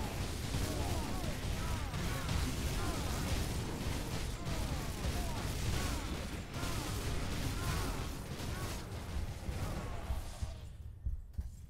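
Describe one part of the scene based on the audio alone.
Magical blasts and metallic clashes of a fierce battle crackle loudly and rapidly.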